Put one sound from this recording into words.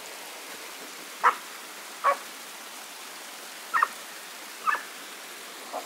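A small waterfall splashes steadily over rocks.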